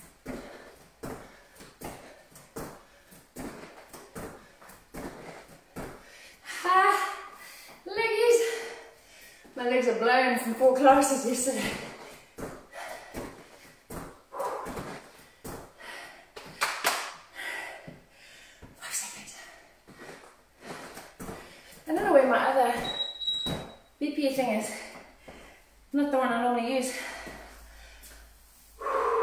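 Feet land in rhythm on a rubber gym floor.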